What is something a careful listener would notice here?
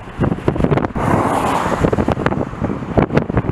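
A car passes close by on a highway.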